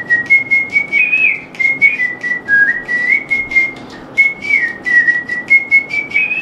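A flute plays a lively melody up close.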